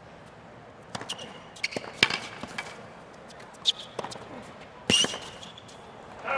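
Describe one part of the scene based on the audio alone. Tennis balls are struck with sharp pops of a racket.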